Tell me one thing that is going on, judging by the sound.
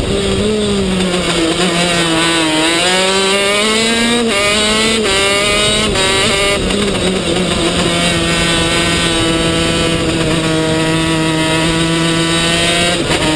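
A kart engine whines loudly close by, its pitch rising and falling as it speeds up and slows down.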